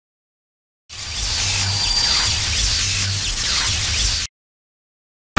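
A magical burst whooshes and shimmers.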